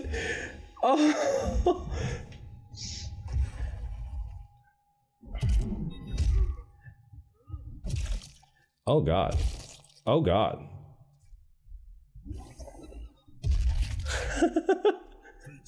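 Heavy blows and crunching impacts land in quick bursts.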